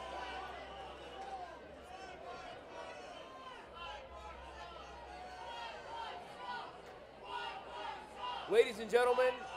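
A crowd of people chatters in a large echoing space.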